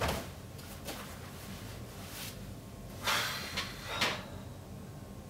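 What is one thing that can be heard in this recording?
A man drops heavily onto a sofa.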